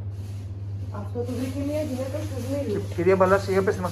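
An elderly woman talks nearby.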